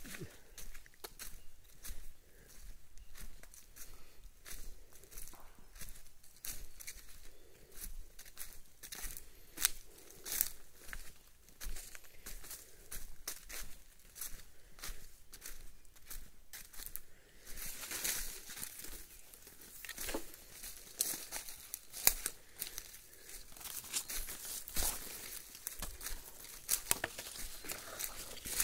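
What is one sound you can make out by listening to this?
Footsteps crunch on dry leaves, walking steadily.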